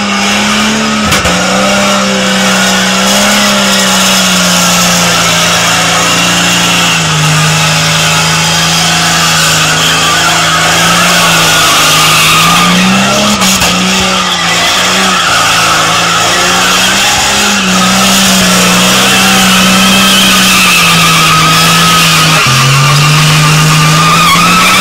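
A pickup truck's engine roars and revs.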